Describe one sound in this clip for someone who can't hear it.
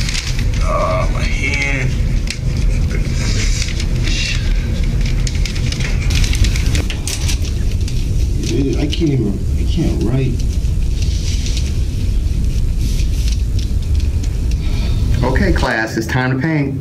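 Teenage boys talk quietly nearby.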